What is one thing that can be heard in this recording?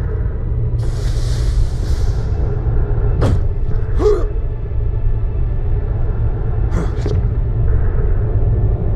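Footsteps thud steadily on rocky ground.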